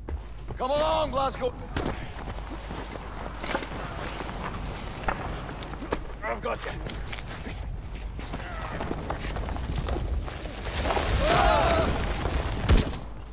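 A man speaks urgently, close by.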